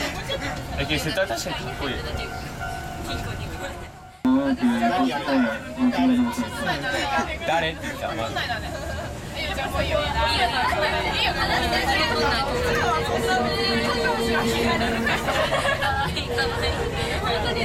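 A tram rumbles and rattles along its tracks.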